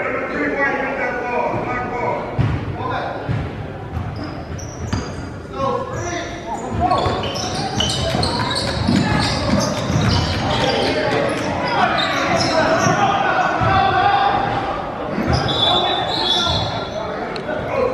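A crowd of young spectators chatters and shouts in a large echoing gym.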